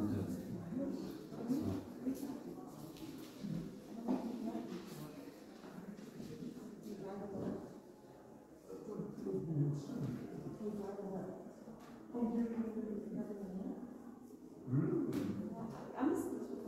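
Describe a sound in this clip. Several men talk quietly nearby.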